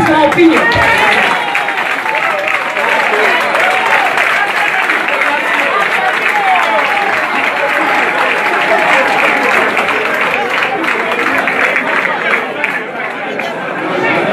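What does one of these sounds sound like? A crowd of men and women shout and talk over each other, close by and agitated.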